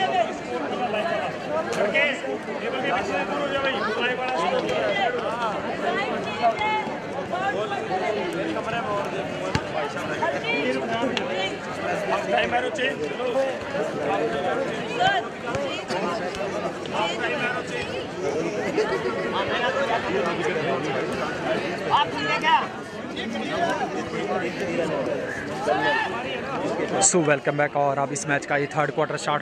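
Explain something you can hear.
A crowd of young people chatters outdoors.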